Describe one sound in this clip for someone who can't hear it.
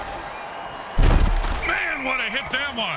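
Armored players crash together with a heavy thud.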